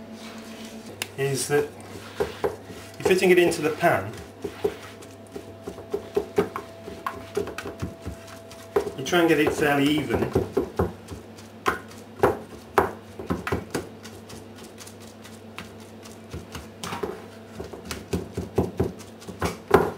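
A spoon scrapes and taps against a plastic dish.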